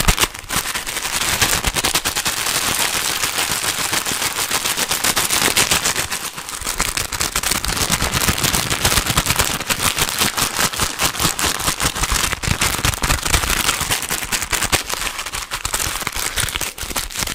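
Plastic crinkles and crackles right up against a microphone.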